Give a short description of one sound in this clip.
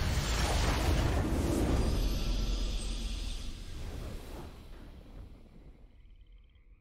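A triumphant game fanfare swells and then fades away.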